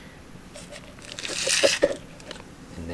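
A plastic lid knocks and rustles as a hand picks it up.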